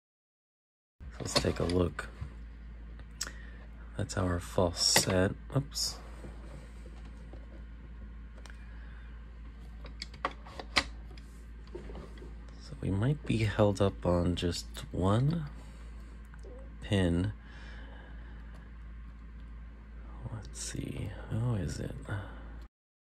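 A metal pick scratches and clicks inside a lock.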